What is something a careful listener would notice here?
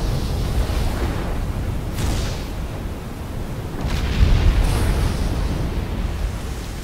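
Thunder rumbles and cracks with the lightning.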